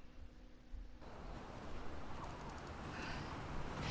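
Wind blows over snow.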